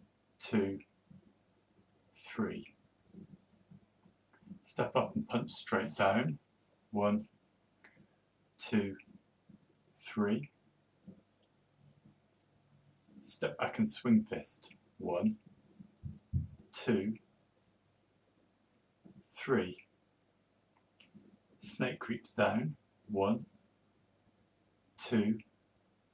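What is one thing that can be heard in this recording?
A man speaks calmly in a room with a slight echo, pausing between phrases.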